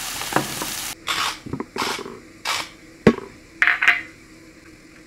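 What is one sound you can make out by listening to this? A metal lid clicks as hands twist it open.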